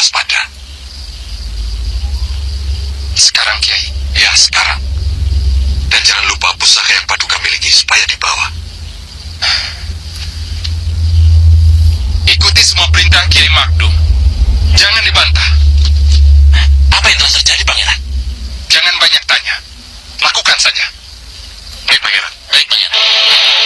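A man speaks in a stern, dramatic voice.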